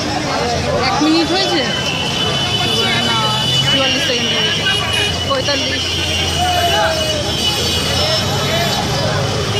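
Car engines idle in traffic.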